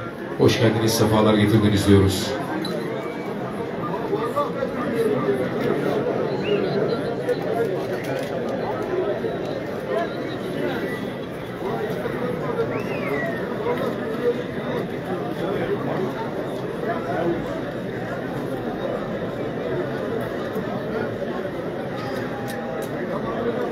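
A large outdoor crowd chatters and murmurs steadily.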